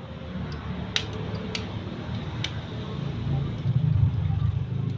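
A fork clinks against a ceramic bowl.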